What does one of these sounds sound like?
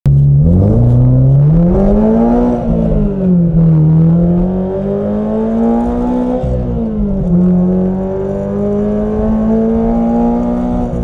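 A car engine revs, rising and falling in pitch as it shifts gears.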